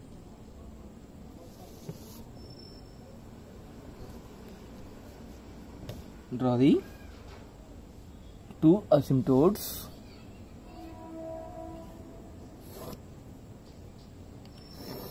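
A plastic ruler slides and taps on paper.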